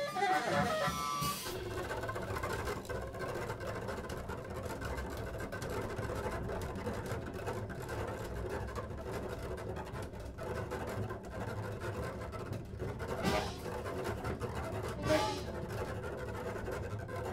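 Drums and cymbals play steadily.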